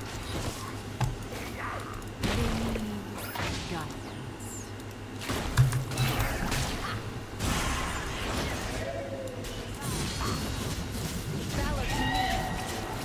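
Game spell effects whoosh and clash in bursts.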